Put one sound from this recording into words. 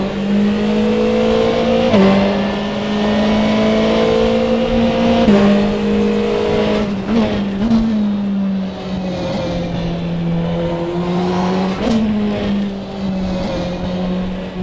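A racing car engine roars loudly, its pitch climbing and dropping sharply with each gear change.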